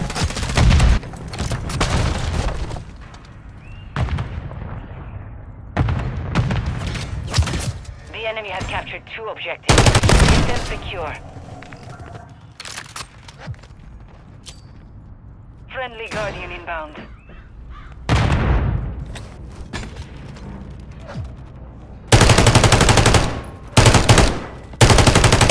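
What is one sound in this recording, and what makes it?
A rifle fires rapid bursts of gunshots at close range.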